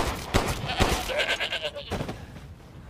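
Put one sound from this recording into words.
A creature snarls and shrieks.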